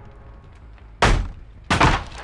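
A character vaults through a window with a heavy thud.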